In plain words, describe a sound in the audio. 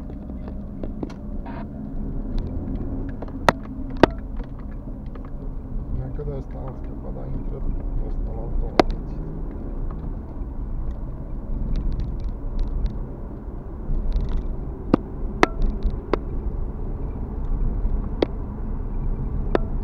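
Tyres rumble over the road surface.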